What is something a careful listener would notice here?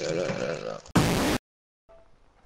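A burst of loud static hisses.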